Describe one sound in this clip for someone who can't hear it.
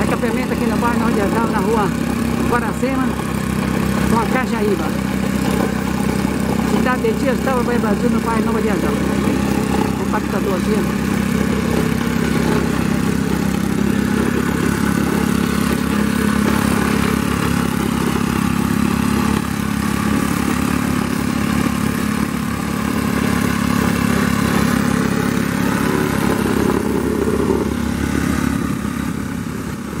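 A plate compactor engine runs with a steady, loud rattling drone.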